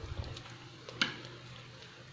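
A metal ladle clinks against the side of a pot.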